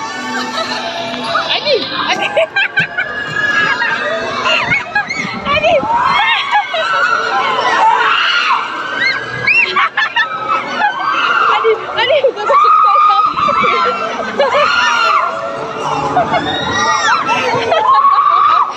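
Young women scream with excitement close by.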